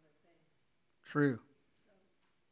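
A man coughs into a microphone.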